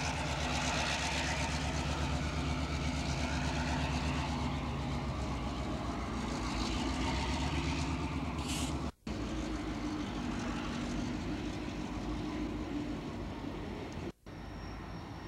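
A diesel locomotive engine rumbles steadily close by.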